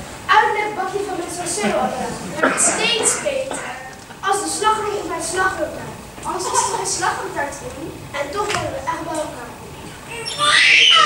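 A young woman answers with animation through a microphone.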